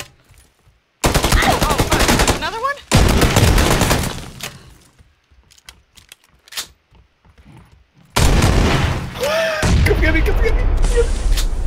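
Shotgun shells click as they are loaded one by one.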